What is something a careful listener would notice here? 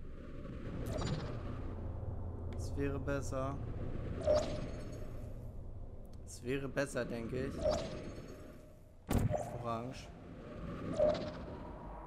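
A sci-fi portal gun fires with a sharp electric zap.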